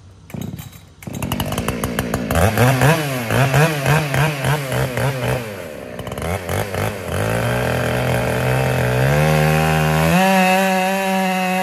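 A chainsaw engine revs up and down nearby.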